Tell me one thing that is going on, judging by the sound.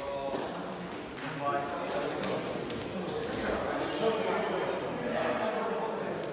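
Men talk and call out to each other in a large echoing hall.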